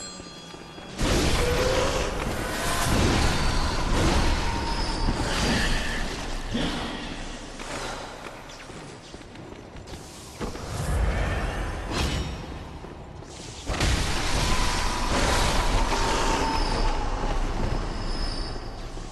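A blade slashes and strikes with heavy impacts.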